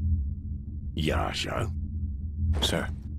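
A deep-voiced man speaks slowly and gravely.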